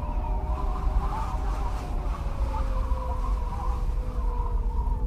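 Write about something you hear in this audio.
Simple electronic game music plays steadily.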